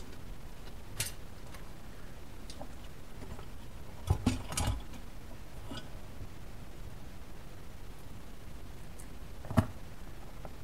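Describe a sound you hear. Metal parts clink and knock against a hard surface.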